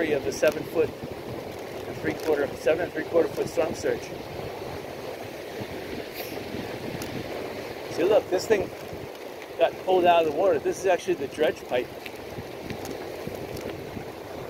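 Wind blows across an open beach.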